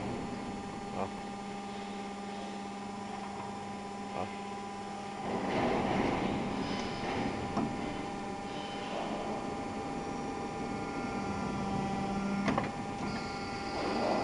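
A steel bar clanks against a machine's blade.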